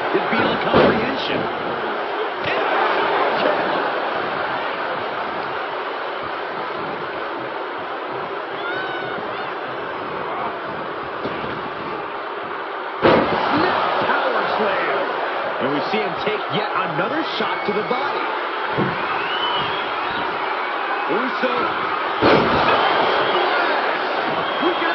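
A large crowd roars and cheers throughout in a big echoing arena.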